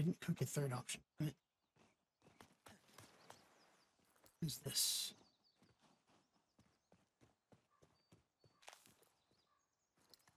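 Footsteps scrape and tap on rocky ground.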